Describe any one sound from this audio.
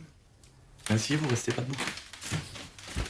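A man speaks calmly indoors.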